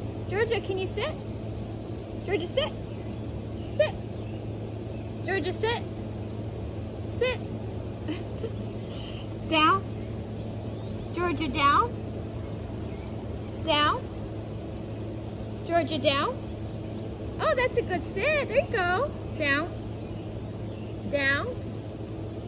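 A woman speaks calmly and encouragingly nearby.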